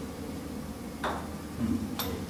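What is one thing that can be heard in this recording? A golf club taps a ball with a sharp click.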